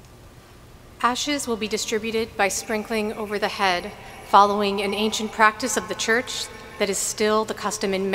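A choir sings loudly in a large echoing hall.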